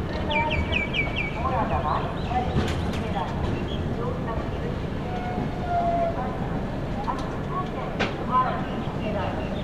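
A train rolls slowly along the tracks with a low, steady rumble.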